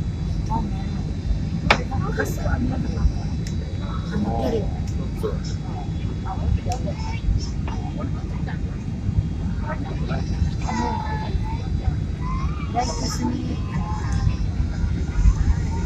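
An airliner's engines roar in a steady low rumble.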